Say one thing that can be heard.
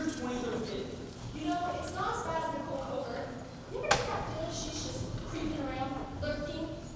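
Young people talk with animation, heard in a large hall.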